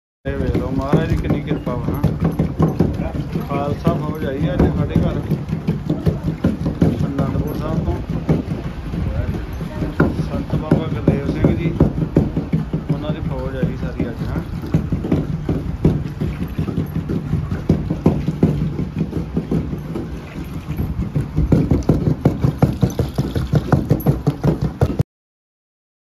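Wooden pestles thud rhythmically into stone mortars.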